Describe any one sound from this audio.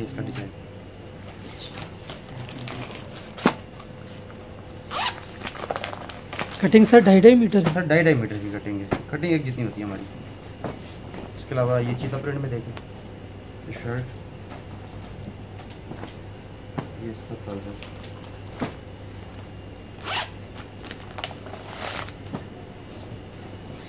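A plastic packet crinkles as it is handled.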